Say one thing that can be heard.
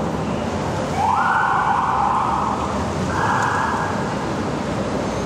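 A police siren gives short blasts.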